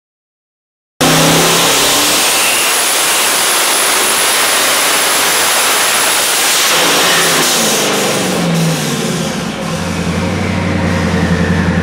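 A powerful engine roars loudly at high revs, then winds down.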